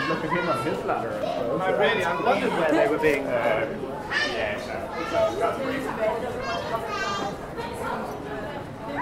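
Men and women chatter close by as a crowd walks along.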